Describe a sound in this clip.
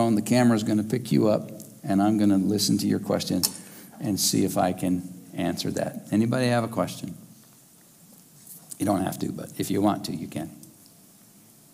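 An older man speaks with animation through a microphone in a room with an echo.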